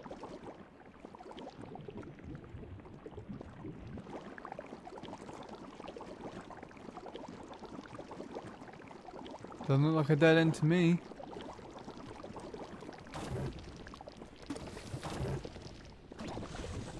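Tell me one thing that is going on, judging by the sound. A game character splashes and squelches through thick, sloshing goo.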